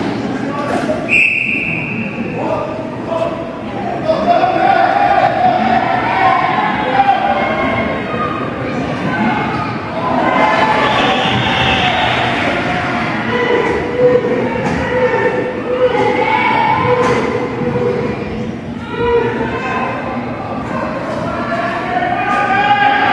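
Young players and spectators shout and call out in an echoing indoor arena.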